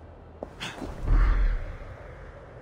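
A body lands with a heavy thud.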